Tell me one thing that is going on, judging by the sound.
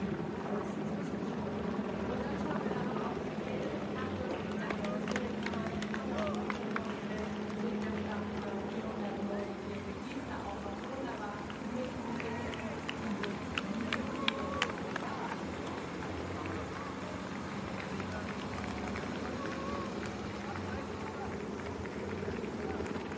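Running shoes patter on a paved road.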